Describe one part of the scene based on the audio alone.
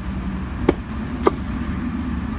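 A hammer knocks sharply.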